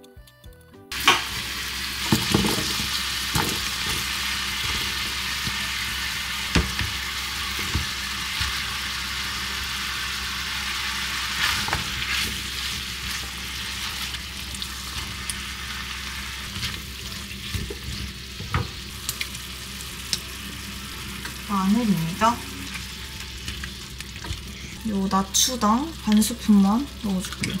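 Food sizzles steadily in a hot frying pan.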